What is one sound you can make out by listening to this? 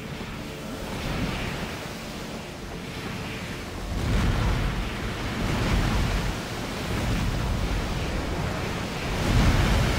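Water splashes and sprays.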